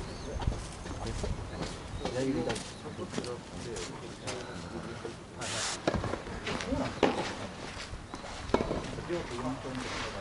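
Footsteps scuff on a hard outdoor court.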